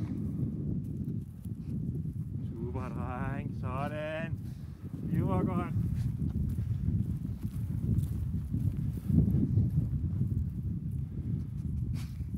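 Wind rumbles steadily across the microphone outdoors.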